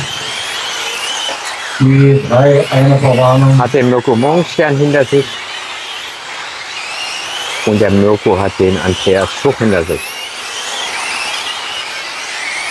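Small electric racing cars whine loudly as they speed past.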